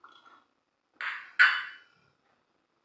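Tea is slurped noisily from a cup.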